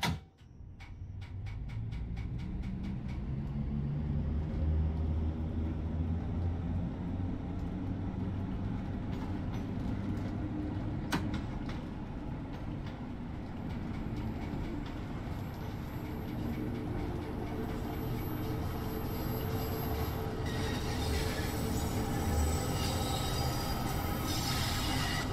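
A train's motor whines as it speeds up.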